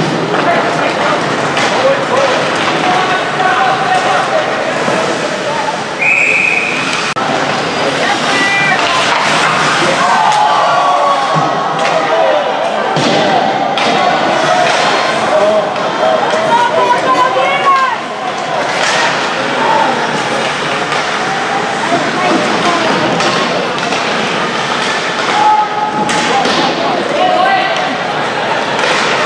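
Ice hockey skates scrape and carve across the ice.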